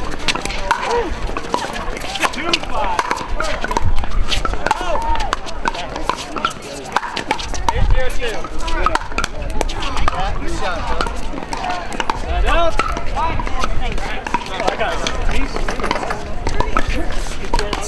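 A crowd of players chatters and calls out nearby, outdoors.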